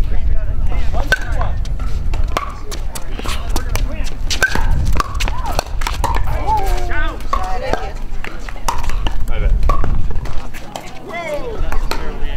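Paddles strike a plastic ball with sharp pops, over and over.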